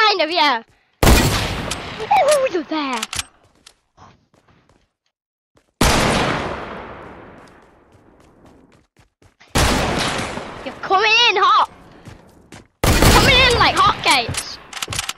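A rifle fires in loud bursts.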